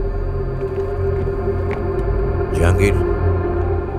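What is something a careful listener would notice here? A man speaks calmly into a phone.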